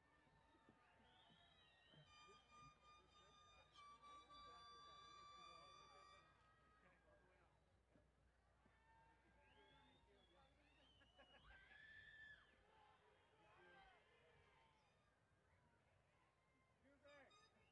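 A crowd of young people cheers and whoops outdoors.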